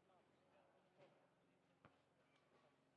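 A tennis ball is struck by a racket a few times outdoors.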